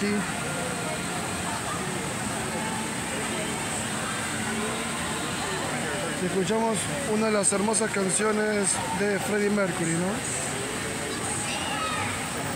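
A crowd of people chatters in a low murmur outdoors.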